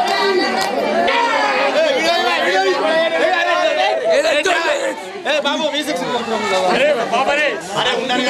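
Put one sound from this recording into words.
A crowd of men shout and cheer loudly.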